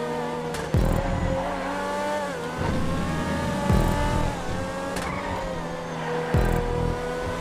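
Tyres thump over kerbs.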